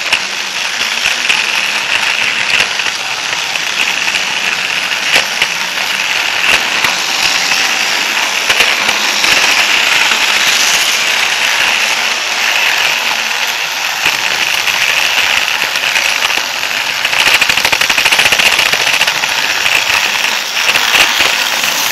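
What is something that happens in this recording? A small electric toy train motor whirs steadily at close range.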